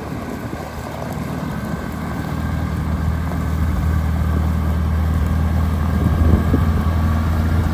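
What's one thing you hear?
An old tractor engine chugs steadily and grows louder as it approaches.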